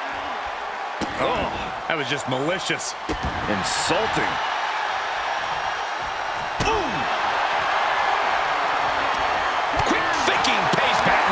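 Blows land with sharp thuds.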